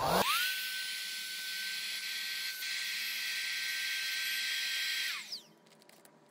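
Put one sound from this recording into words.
An electric vacuum pump whirs steadily, sucking air from a plastic storage bag.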